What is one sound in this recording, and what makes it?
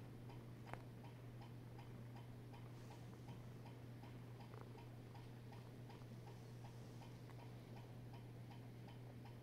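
A cat purrs steadily close by.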